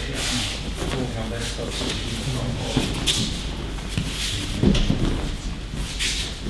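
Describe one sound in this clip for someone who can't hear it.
Bodies thud onto a mat as people are thrown.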